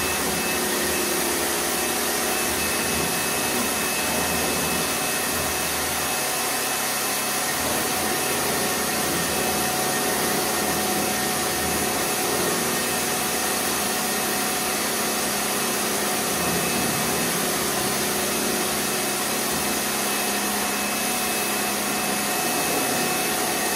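A pressure washer motor hums steadily.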